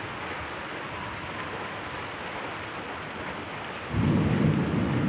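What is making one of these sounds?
Steady rain falls and patters.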